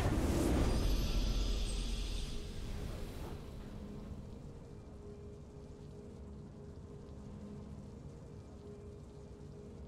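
A short victory fanfare plays softly.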